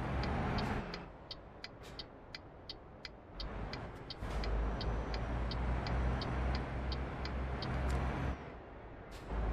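A turn signal ticks rapidly.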